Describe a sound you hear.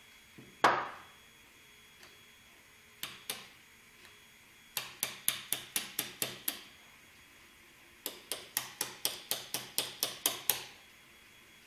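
A small hammer taps quickly on hard plastic in short bursts.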